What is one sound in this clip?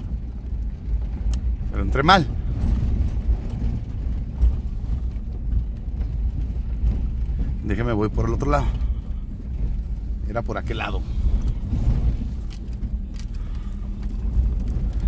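A car engine rumbles low and steady while the car drives slowly.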